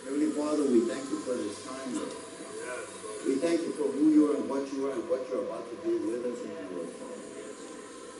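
A middle-aged man speaks earnestly into a microphone.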